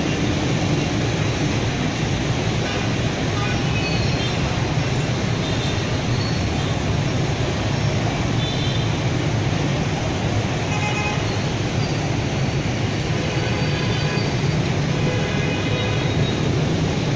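Heavy traffic roars steadily, with many motorbike engines humming.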